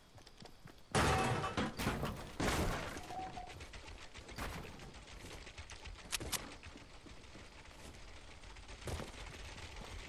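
Wooden building pieces thud and clatter into place in quick bursts.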